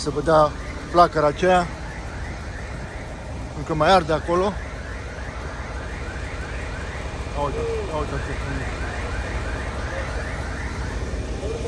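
A fire engine's motor idles nearby with a low rumble.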